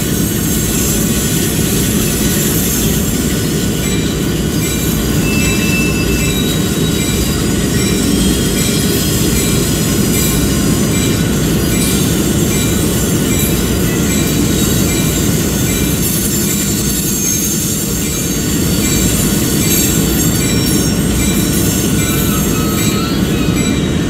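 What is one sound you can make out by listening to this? Diesel locomotive engines rumble steadily and loudly.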